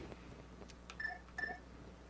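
A short electronic blip sounds.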